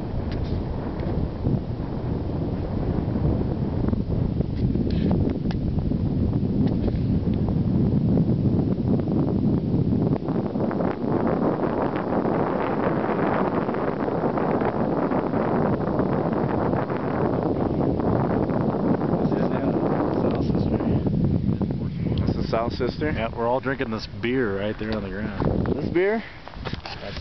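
Wind blows hard and steadily outdoors.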